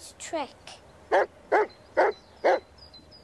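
A large dog barks loudly nearby.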